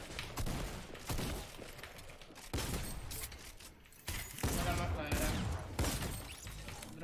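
Game sound effects thud and crash in quick bursts.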